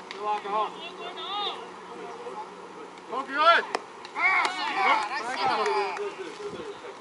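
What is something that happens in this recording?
Young players shout and cheer outdoors across an open field.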